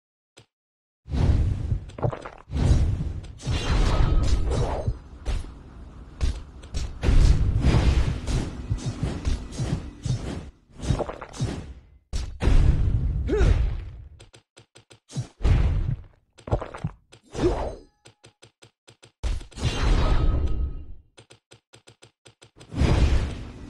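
Weapons clash and magic blasts burst in a loud fight.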